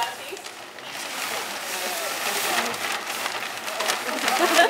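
A plastic sheet rustles and crackles as it is pulled off.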